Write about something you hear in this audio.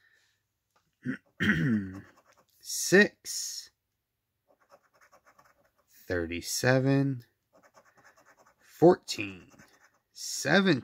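A coin scratches across a paper card.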